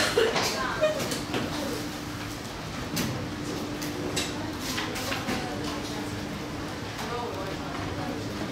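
Students chatter quietly in a room.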